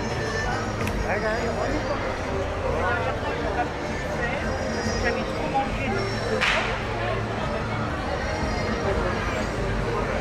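A busy pedestrian street murmurs with many voices nearby outdoors.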